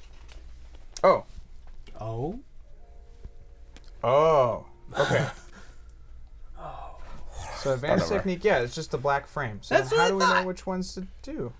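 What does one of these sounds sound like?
Several adult men talk with animation around a table, heard through microphones.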